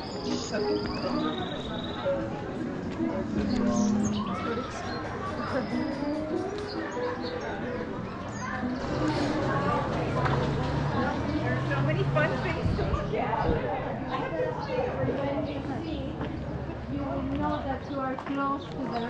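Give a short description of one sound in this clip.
A crowd of people chatters nearby on a busy street.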